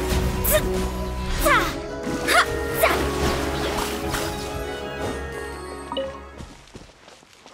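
Magical blasts crackle and boom with bright chiming tones.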